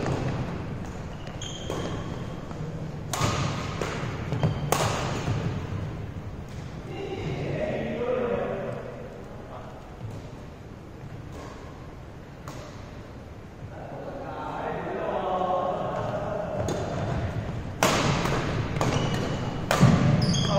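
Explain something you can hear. Badminton rackets strike a shuttlecock with sharp pops in a large echoing hall.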